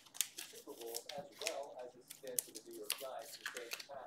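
Cardboard packs rustle and scrape as hands handle them.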